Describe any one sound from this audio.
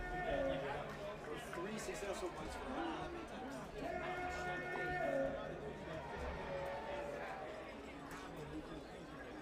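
A crowd murmurs in the stands outdoors.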